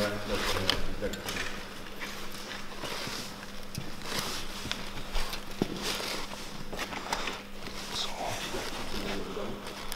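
Small metal parts tap and scrape as they are fitted by hand.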